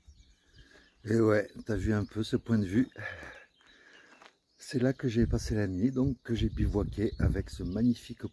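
A middle-aged man talks with animation close to the microphone.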